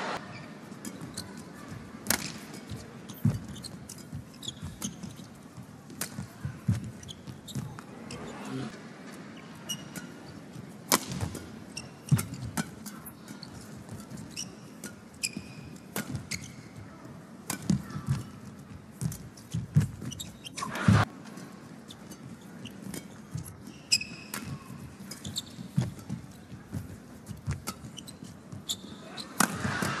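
Rackets smack a shuttlecock back and forth in a quick rally.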